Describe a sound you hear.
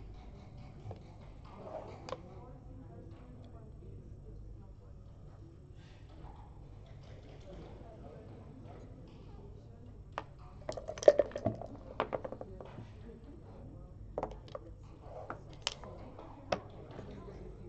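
Game pieces click as they are set down on a board.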